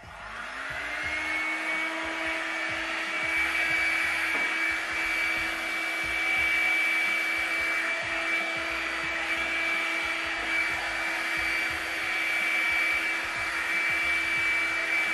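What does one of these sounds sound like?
A hair dryer spins up and blows with a steady, high whine.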